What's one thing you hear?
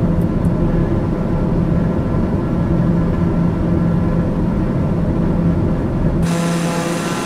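A propeller engine drones steadily, muffled.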